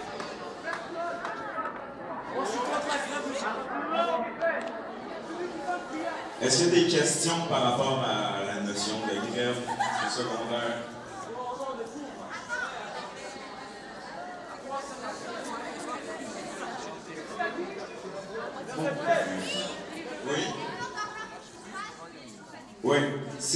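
Many young people chatter quietly nearby.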